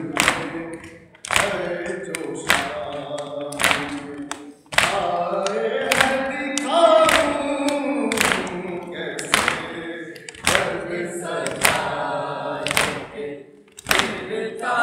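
A group of men and boys beat their chests in a steady rhythm.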